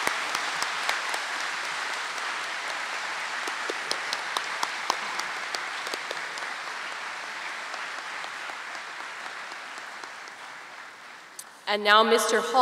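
A large crowd applauds steadily in a big hall, slowly fading.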